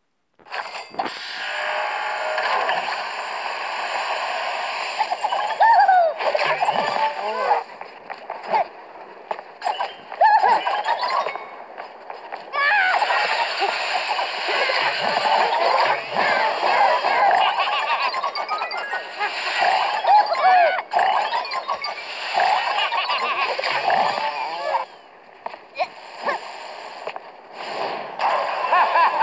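Cheerful game music plays throughout.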